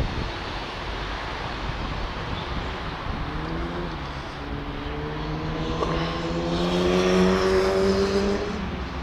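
Traffic hums nearby.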